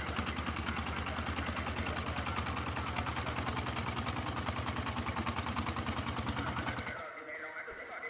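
A small boat engine chugs steadily.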